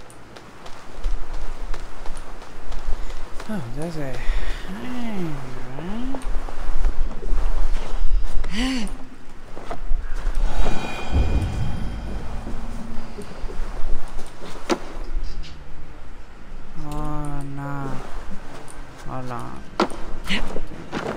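Hands and feet knock and scrape against wooden boards while climbing.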